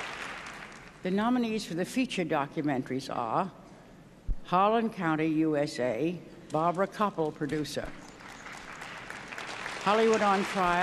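An elderly woman speaks slowly into a microphone.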